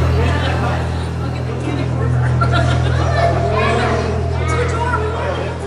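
A crowd of men, women and children chatter nearby.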